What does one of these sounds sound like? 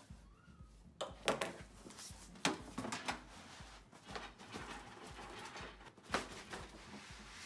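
A cardboard box rustles and scrapes as it is lifted away.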